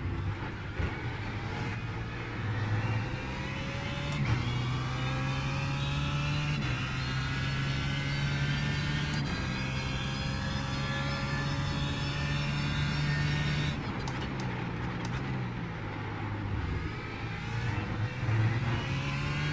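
A racing car engine roars loudly, climbing in pitch through gear changes and dropping as the car slows for a corner.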